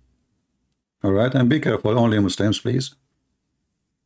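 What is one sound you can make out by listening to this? A man speaks quickly and with animation, close to a microphone.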